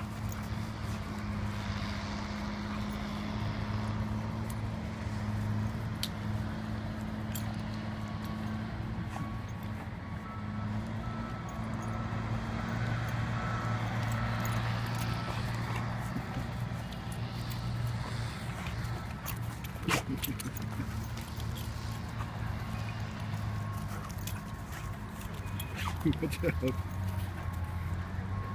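Dogs growl playfully while wrestling.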